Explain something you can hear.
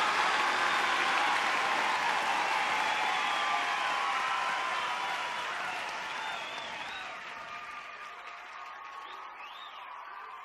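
A large crowd cheers and whistles, slowly fading.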